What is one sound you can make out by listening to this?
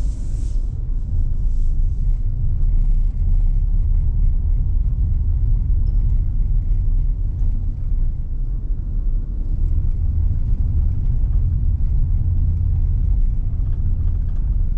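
Tyres rumble on a smooth road surface.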